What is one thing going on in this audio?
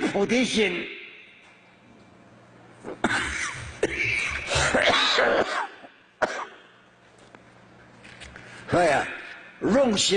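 An elderly man speaks slowly and calmly into a microphone.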